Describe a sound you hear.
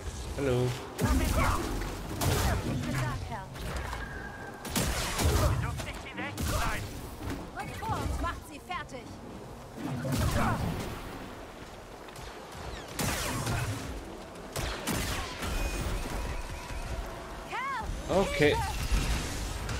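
Lightsaber blades clash with sharp crackling hits.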